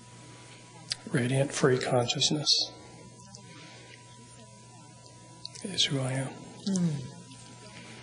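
A man speaks calmly into a microphone nearby.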